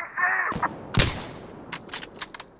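A rifle fires a single loud shot that echoes briefly.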